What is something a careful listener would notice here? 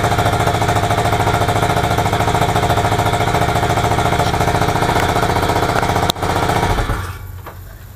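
A scooter engine idles loudly with a steady rattling hum, then stops.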